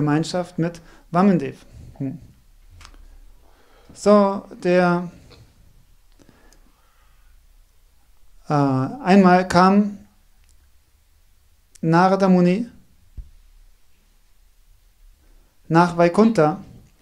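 A man speaks slowly into a microphone in short phrases, with pauses between them.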